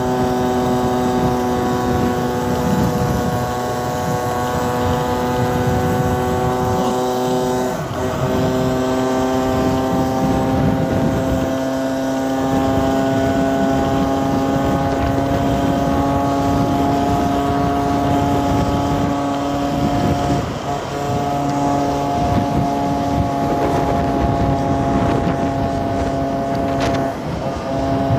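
A motorcycle engine hums steadily up close, its pitch dipping briefly with gear changes.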